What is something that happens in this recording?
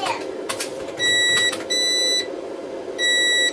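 An electronic charger beeps with short high tones.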